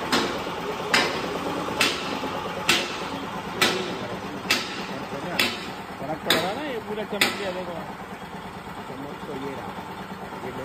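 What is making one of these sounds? A machine runs with a steady whirring hum.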